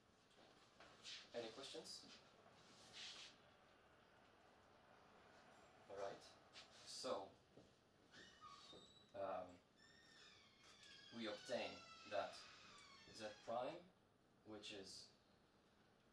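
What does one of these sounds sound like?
A young man lectures calmly.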